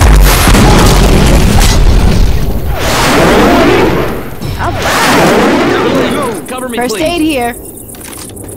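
Gunshots boom in loud, rapid bursts.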